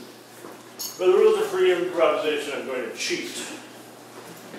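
A man speaks with animation, then trails off.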